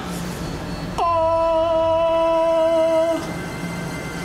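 A bright magical chime rings out steadily as a sword flares with light.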